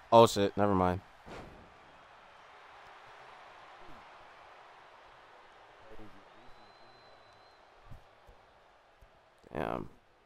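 A large crowd cheers and murmurs in a big arena.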